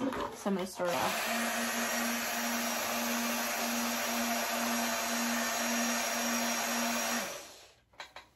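A battery-powered bubble machine whirs steadily.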